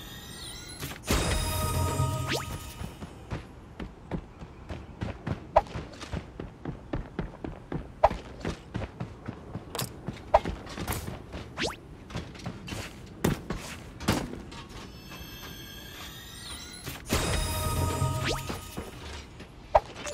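A treasure chest opens with a bright, ringing chime.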